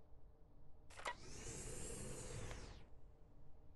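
A heavy sliding door whooshes open.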